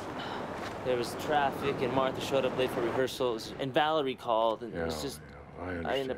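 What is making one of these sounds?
A man speaks calmly up close.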